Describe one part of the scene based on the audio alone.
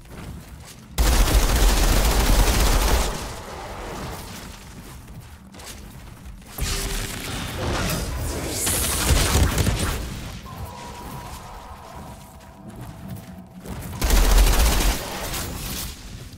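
Heavy gunfire bursts loudly in rapid blasts.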